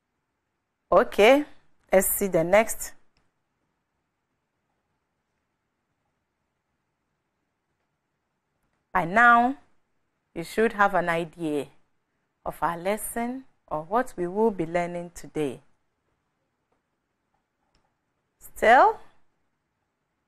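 A young woman speaks clearly into a microphone, with pauses between phrases.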